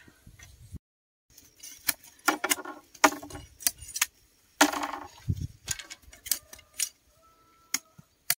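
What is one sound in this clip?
Bamboo strips clatter as they are handled.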